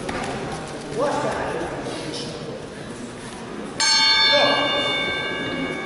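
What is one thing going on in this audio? A man calls out commands loudly in a large echoing hall.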